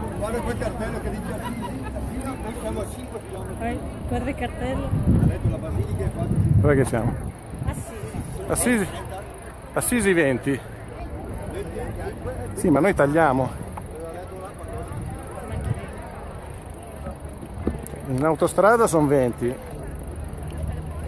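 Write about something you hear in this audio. Men and women chat and call out nearby as they walk.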